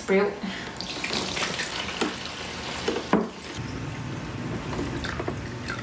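Water pours from a jug and splashes onto plants.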